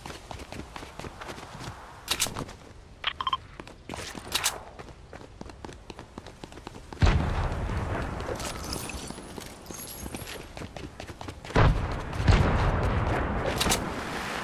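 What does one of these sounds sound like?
Quick footsteps patter on pavement.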